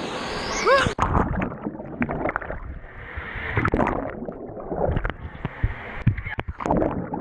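Bubbling, muffled water sounds come from underwater.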